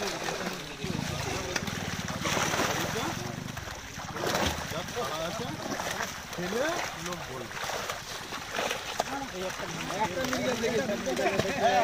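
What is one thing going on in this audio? Water splashes as fish thrash in shallow water.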